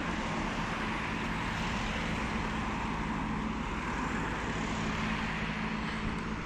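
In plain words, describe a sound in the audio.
A car passes close by.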